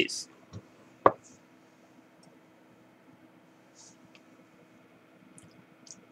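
A glass knocks lightly against a table.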